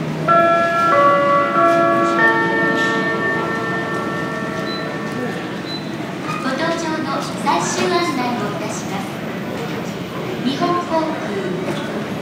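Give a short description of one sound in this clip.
People murmur faintly in a large echoing hall.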